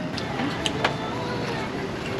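A middle-aged man chews food noisily up close.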